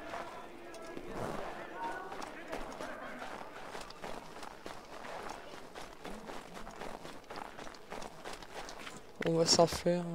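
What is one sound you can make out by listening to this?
Quick footsteps patter across a roof.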